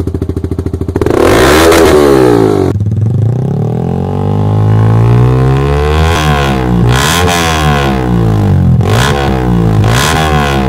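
A motorcycle engine revs up and down repeatedly, roaring loudly through its exhaust.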